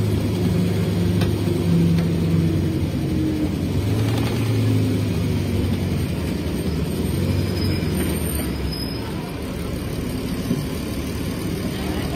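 A bus engine rumbles low and steady as the bus turns slowly.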